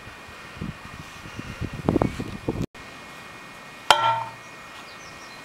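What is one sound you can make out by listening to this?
A metal post driver clangs down onto a wooden post.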